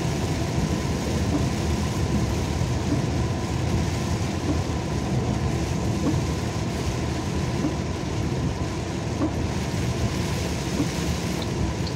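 Windscreen wipers sweep across the glass.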